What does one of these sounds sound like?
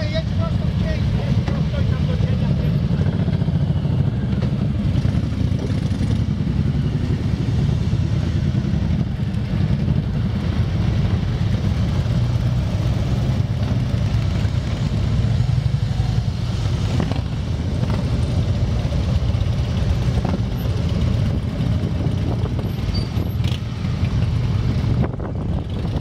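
Many motorcycle engines rumble deeply close by.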